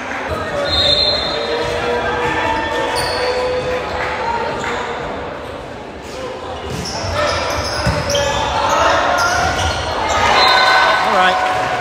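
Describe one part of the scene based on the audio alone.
A small crowd chatters and cheers in the background.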